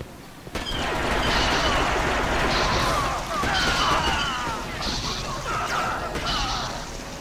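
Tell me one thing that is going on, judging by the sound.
Blaster bolts zip and whine past.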